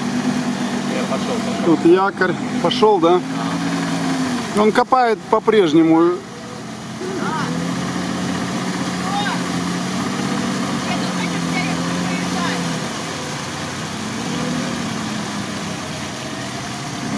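An engine hums steadily as a vehicle crawls through mud.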